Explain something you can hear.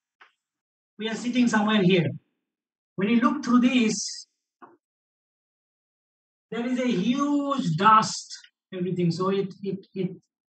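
A man lectures calmly into a microphone, speaking in short phrases.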